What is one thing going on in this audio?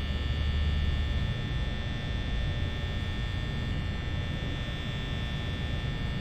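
A fan hums steadily.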